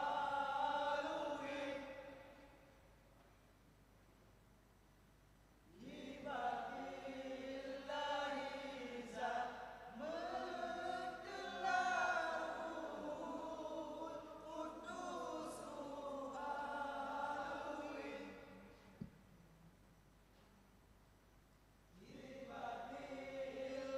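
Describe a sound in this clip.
A group of young men chants together in unison.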